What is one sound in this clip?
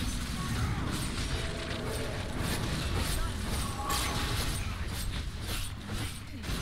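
Magic spells burst and crackle in a fast battle.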